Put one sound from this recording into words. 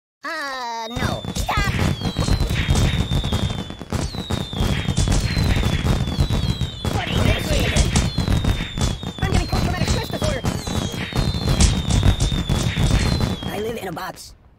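Fireworks whistle as they shoot off.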